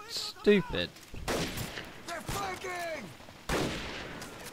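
A rifle fires single loud shots that echo away.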